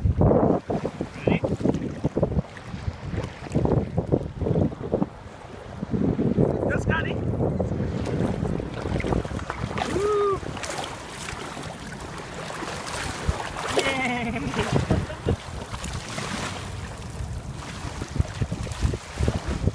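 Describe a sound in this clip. Small waves lap outdoors in the wind.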